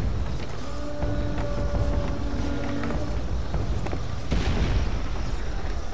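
Footsteps thud quickly across wooden planks.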